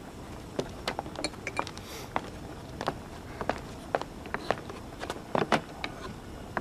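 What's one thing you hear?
A wooden chair knocks and clatters as it is carried and set down.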